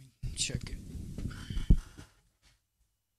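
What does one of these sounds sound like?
A microphone rumbles and thumps as it is handled.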